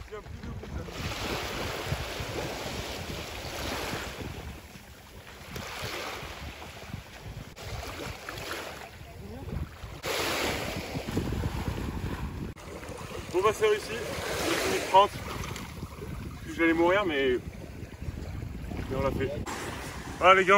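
Small waves wash and lap in shallow water.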